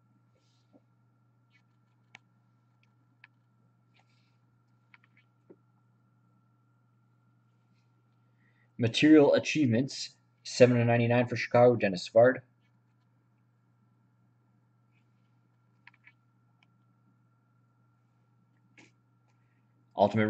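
Cards tap and rustle softly in a man's hands.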